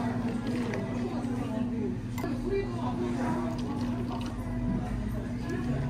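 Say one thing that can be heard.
Espresso pours from a small metal pitcher into iced coffee.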